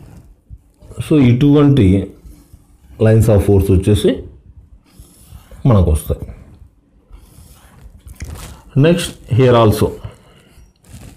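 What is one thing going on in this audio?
A man speaks calmly in short bursts, close by.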